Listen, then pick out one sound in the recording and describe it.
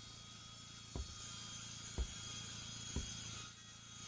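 A wooden plank knocks into place.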